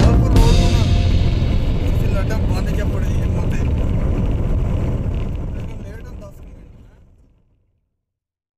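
A vehicle drives steadily along a road with a low rumble that fades out.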